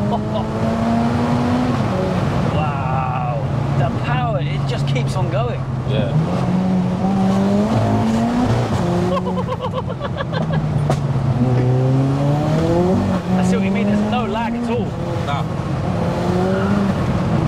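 A car engine drones and revs up and down as it drives.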